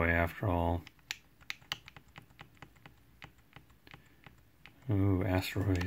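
Small plastic buttons on a handheld game console click in quick succession.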